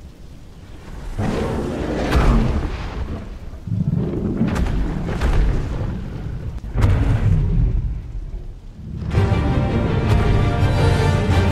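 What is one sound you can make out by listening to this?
A huge beast roars loudly and repeatedly.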